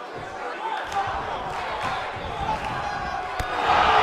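A kick smacks against a body.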